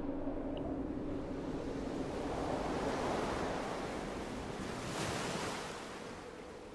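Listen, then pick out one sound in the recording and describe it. Rough sea water churns and roars.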